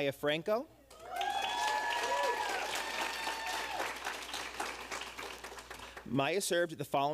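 An audience claps and cheers.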